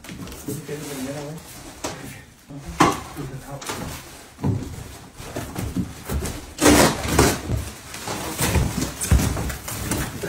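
A heavy cardboard box scrapes and thumps as two men tip it over.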